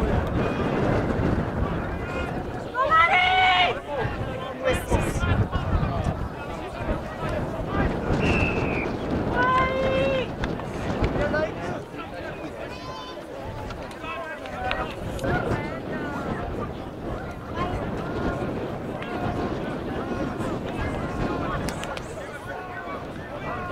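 Young male players shout to each other outdoors.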